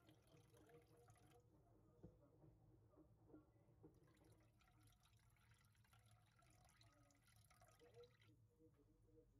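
Water pours and trickles into a pot.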